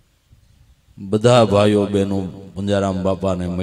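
An older man sings through a microphone in a steady, drawn-out voice.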